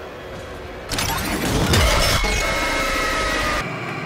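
A mechanical monster lets out a sudden, loud screech.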